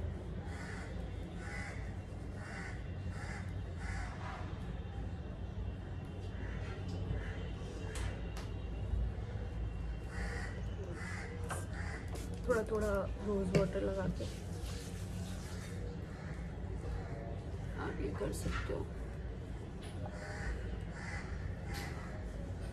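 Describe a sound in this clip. Fingers rub a gritty scrub across skin.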